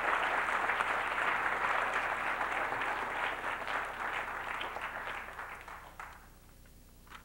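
An audience applauds in a large room and the applause fades.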